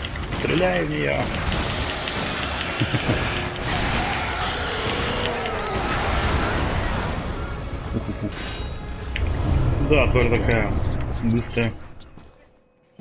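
Blades slash and clash in a loud, roaring fight.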